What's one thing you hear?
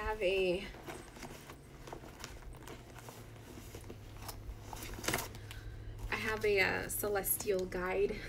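Plastic wrapping rustles.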